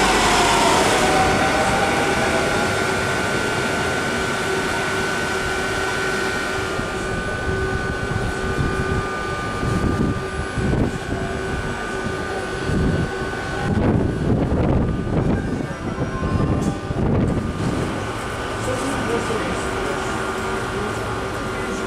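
An electric train hums steadily.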